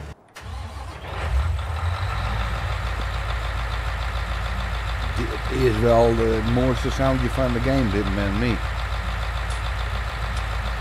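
A large harvester engine idles with a deep, steady rumble.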